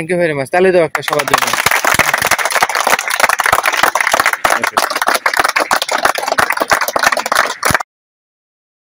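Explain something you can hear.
A group of young men clap their hands.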